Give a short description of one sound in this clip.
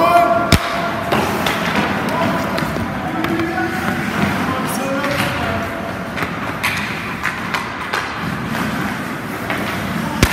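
Hockey skates scrape and carve across ice in a large echoing rink.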